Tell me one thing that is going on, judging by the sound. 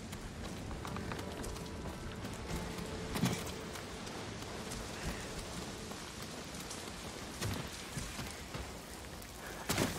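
A waterfall rushes and splashes in an echoing cave.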